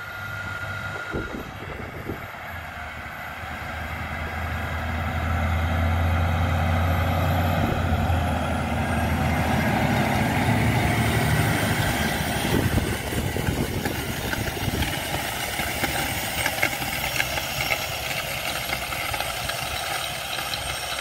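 A tractor engine rumbles steadily, growing louder as it approaches.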